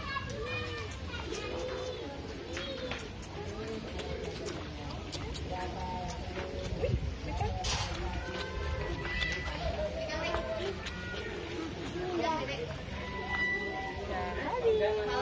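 Goats bleat close by.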